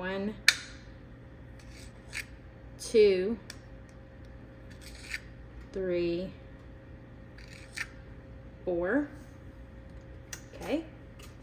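A small metal spoon scrapes and taps against the rim of a tin can.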